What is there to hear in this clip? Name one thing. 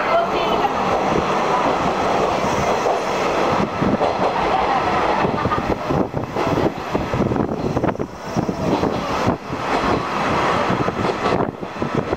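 Wind rushes past an open carriage.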